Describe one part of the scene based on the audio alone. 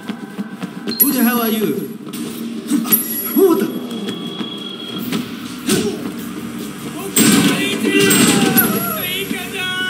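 Blows thud as two men fight.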